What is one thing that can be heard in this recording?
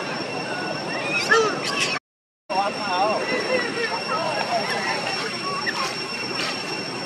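A baby monkey squeaks and whimpers nearby.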